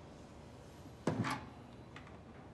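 A telephone handset is lifted with a clatter.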